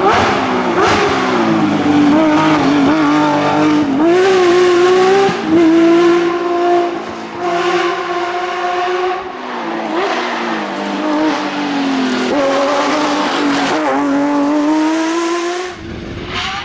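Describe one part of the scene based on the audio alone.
A racing car engine roars loudly, revving up and down through the gears as the car speeds past.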